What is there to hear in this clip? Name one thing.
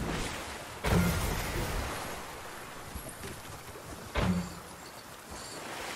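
Water splashes as a game character swims and wades through a lake.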